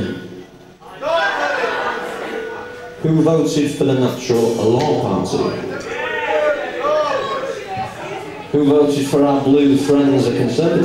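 A rock band plays loudly on electric guitars.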